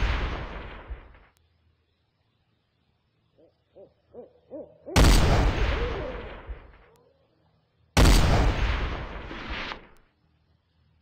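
A rifle fires loud shots that boom and fade away.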